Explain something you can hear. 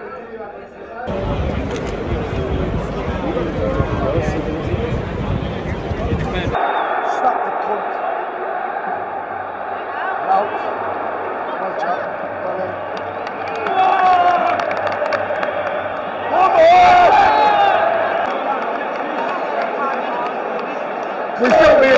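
A huge stadium crowd roars and chants in a large open space.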